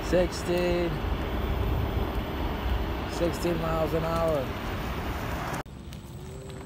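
Wind rumbles and buffets loudly outdoors.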